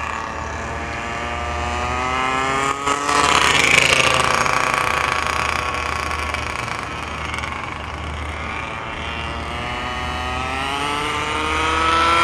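A gas-powered 1/5 scale RC buggy engine revs up and down as it drives across a lot.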